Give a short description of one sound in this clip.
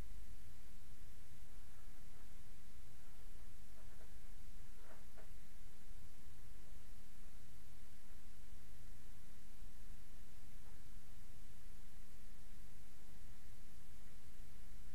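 Plastic wrapping crinkles and rustles faintly as it is handled.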